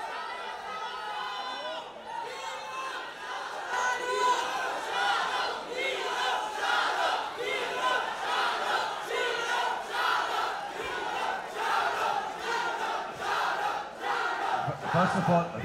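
A large crowd cheers and shouts loudly in a big hall.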